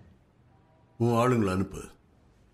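An older man speaks in a low, calm voice.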